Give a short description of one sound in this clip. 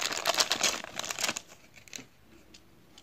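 Plastic wrapping crinkles and rustles loudly close by.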